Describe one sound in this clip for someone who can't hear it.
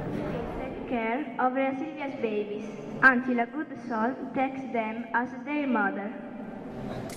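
A young girl recites into a microphone, heard through a loudspeaker.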